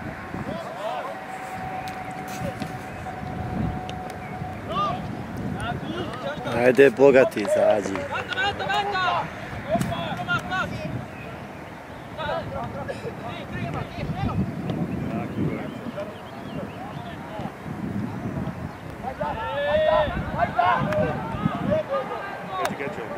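Teenage boys shout to each other across an outdoor football pitch.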